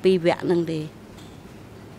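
An elderly woman speaks briefly into a microphone.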